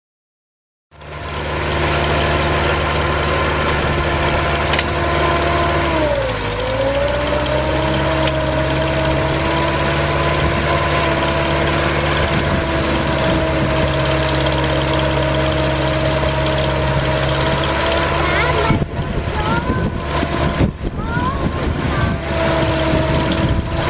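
A drilling rig engine runs loudly and steadily, dipping in pitch for a moment.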